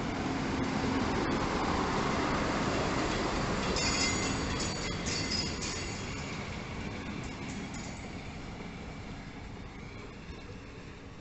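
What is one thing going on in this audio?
A diesel train rumbles past close by and slowly fades.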